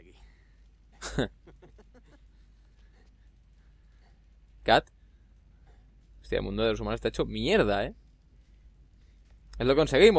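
A man answers in a low, amused voice.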